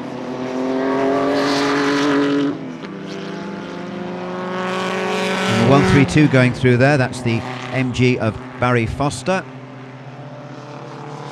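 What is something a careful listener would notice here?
Racing car engines roar steadily as the cars approach and pass close by.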